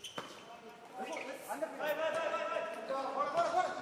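Shoes squeak sharply on a hard floor.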